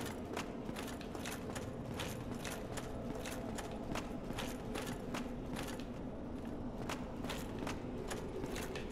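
Armoured footsteps clank quickly on a stone floor.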